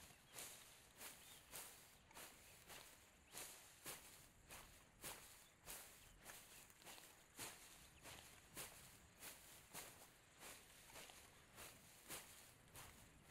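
Footsteps run quickly and steadily through dry grass.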